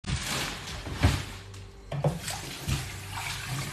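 Metal clanks against a sink.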